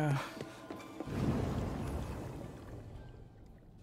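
A rushing whoosh swells and fades.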